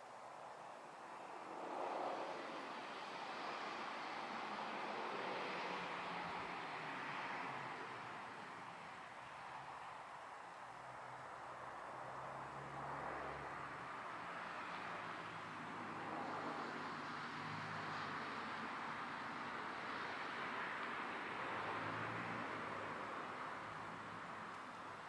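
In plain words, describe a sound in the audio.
Cars pass on a road some distance away, their tyres hissing as they come and go.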